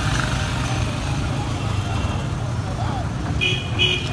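A truck drives past close by.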